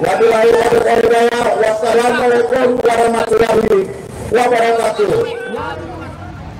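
A man speaks loudly through a megaphone outdoors.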